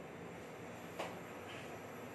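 A kettle clinks as it is picked up.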